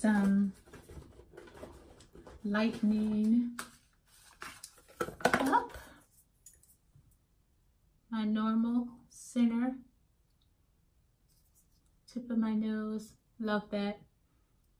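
A woman speaks calmly and close by, pausing between phrases.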